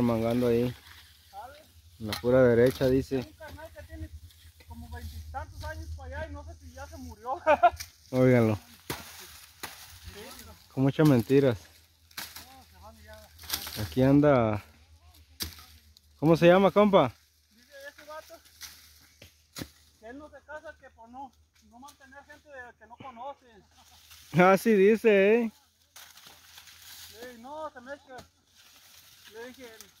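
A machete chops through dry cane stalks.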